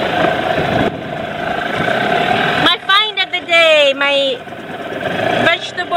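Water splashes against the hull of a small boat.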